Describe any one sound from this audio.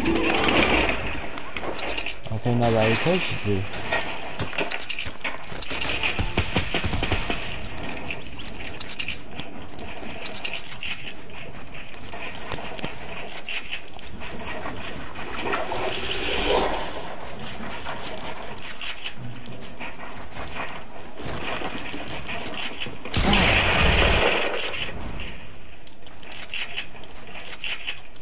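Wooden walls clatter as they are built quickly in a video game.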